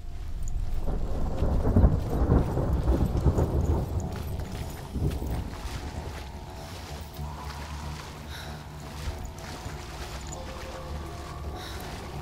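A woman runs with quick footsteps on grass.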